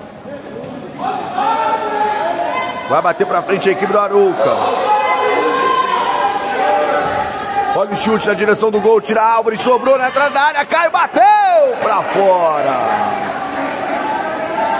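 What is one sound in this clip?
Children and spectators shout and cheer loudly in an echoing indoor hall.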